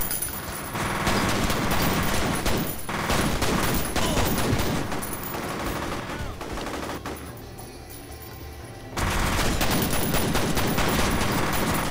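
Pistol shots fire in rapid bursts.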